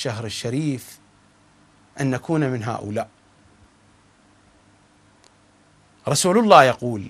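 A middle-aged man speaks calmly and earnestly into a close microphone, with pauses.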